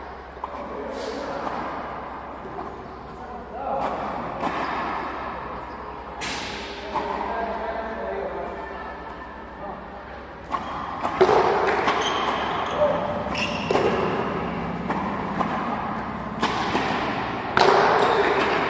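A ball smacks against a wall and echoes around a large hall.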